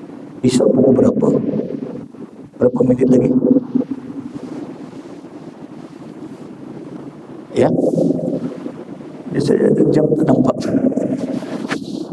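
A middle-aged man speaks with animation into a headset microphone, in bursts with pauses.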